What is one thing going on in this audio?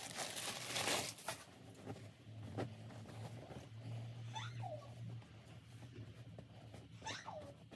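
Soft fabric rustles.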